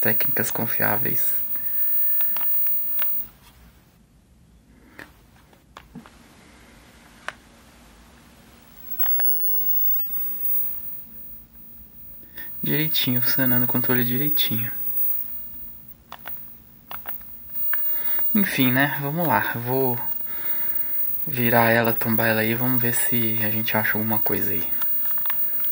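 Buttons on a remote control click softly.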